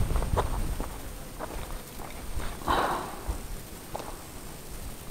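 Footsteps crunch on loose stones and gravel.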